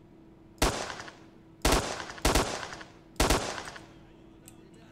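Rifle shots boom in quick succession, echoing.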